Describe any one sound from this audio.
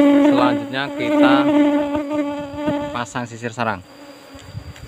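A swarm of bees buzzes loudly up close.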